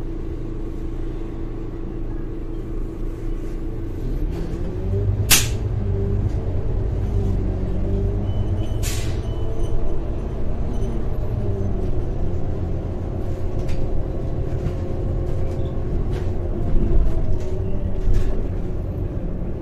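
A bus engine hums and rises in pitch as the bus pulls away.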